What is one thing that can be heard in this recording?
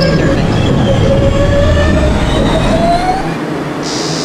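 A subway train's motors whine and wind down as the train comes to a stop.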